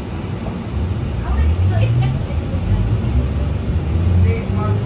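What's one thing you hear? A bus engine revs up as the bus pulls away.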